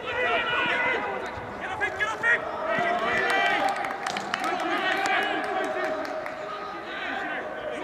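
Young men shout to each other across an open, echoing ground.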